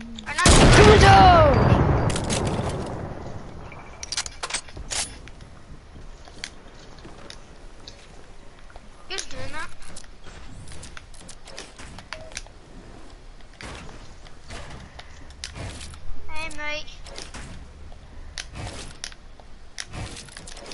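Building pieces snap into place with sharp clacks.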